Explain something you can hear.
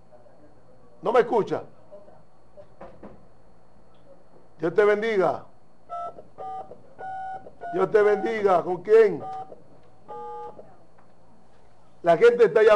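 A man speaks in short bursts, close by.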